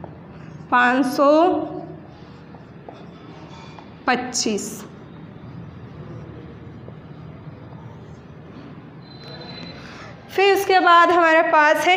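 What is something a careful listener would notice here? A young woman speaks clearly in short phrases, nearby.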